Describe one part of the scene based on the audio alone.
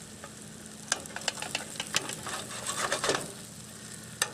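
A metal spatula scrapes and clatters on a griddle.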